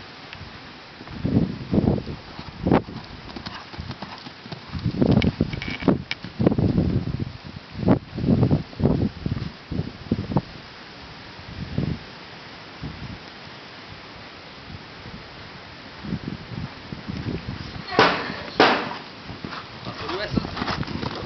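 A horse's hooves thud on soft sand as it canters.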